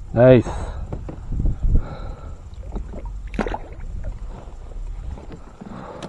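A fish splashes as it is let go into the water.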